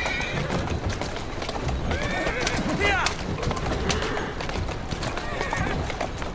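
A horse-drawn carriage rattles over cobblestones.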